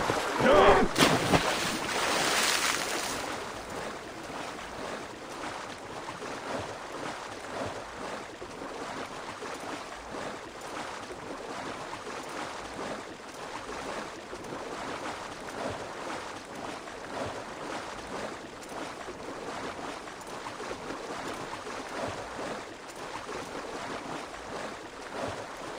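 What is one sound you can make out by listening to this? A rider on a swimming mount splashes steadily through water.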